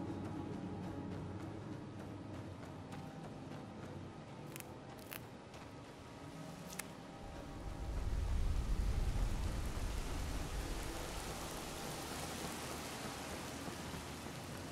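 Footsteps tread steadily on dirt and wooden boards.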